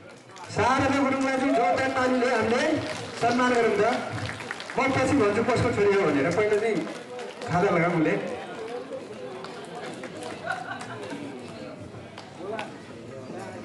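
A young man sings into a microphone through loudspeakers in a large hall.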